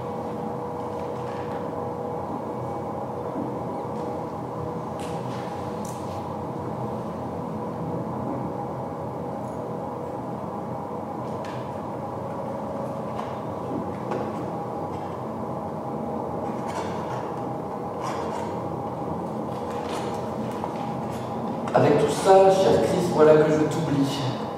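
Electronic music hums in a steady, low drone.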